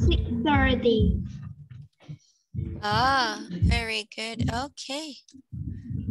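A woman speaks slowly and clearly over an online call.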